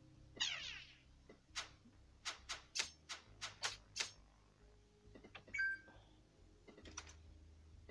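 Short electronic game sound effects click and chime.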